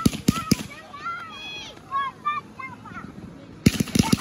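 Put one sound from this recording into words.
A firework rocket whistles as it shoots up.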